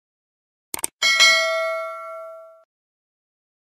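A bell chimes and rings out.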